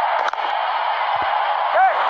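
A large stadium crowd roars and cheers.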